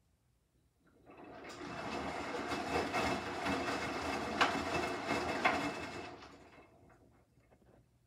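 Wet laundry tumbles and sloshes inside a turning washing machine drum.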